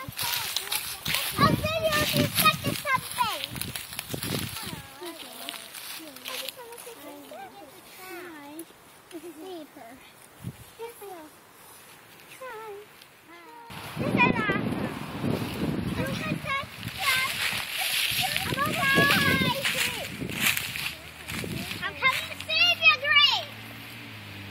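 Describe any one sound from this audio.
A young girl talks and calls out excitedly close by.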